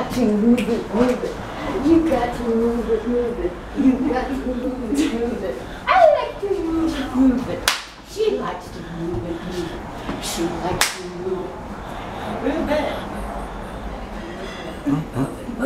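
A middle-aged woman laughs nearby.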